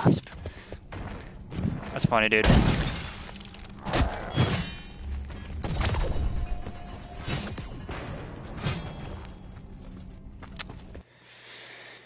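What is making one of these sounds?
Video game combat sounds, with sharp blasts and impacts, crackle loudly.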